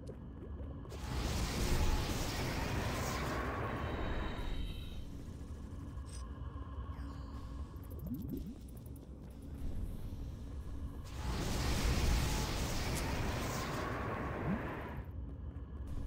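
A burst of flame roars loudly in two long rushes.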